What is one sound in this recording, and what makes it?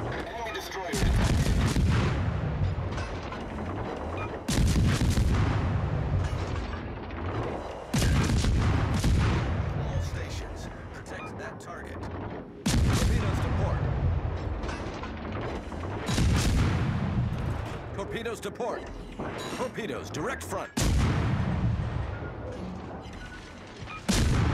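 Heavy naval guns fire in loud booming salvos.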